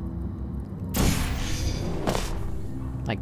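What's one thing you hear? A portal whooshes open.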